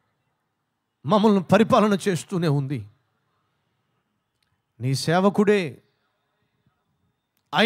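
A man sings with feeling into a microphone, heard through loudspeakers.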